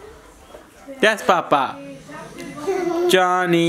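A toddler girl laughs loudly close by.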